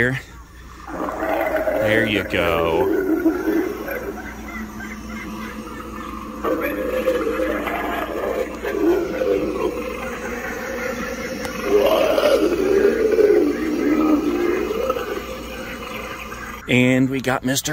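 An animatronic monster speaks in a deep, eerie, drawn-out voice.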